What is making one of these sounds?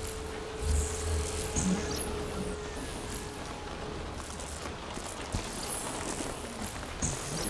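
Electric energy crackles and whooshes in bursts.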